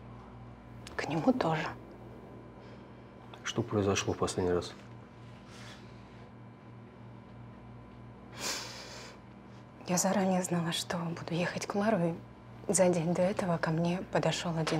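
A young woman speaks quietly and tensely close by.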